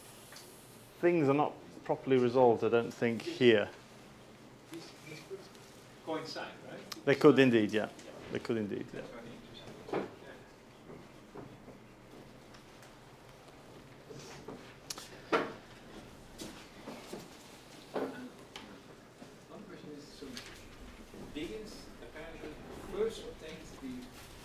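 A middle-aged man lectures calmly.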